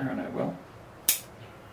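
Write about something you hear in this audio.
Scissors snip a twig.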